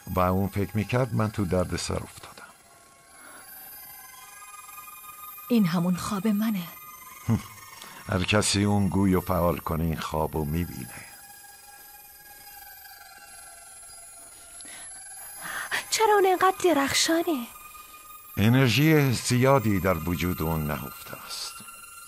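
An elderly man speaks calmly and slyly, close by.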